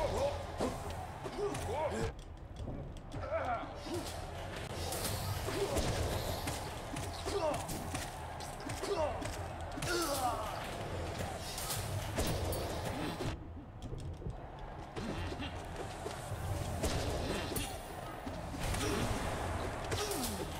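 Sword slashes and heavy blows clash rapidly in a video game fight.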